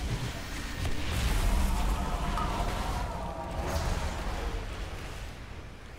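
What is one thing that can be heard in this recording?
Magic spells crackle and whoosh in a game battle.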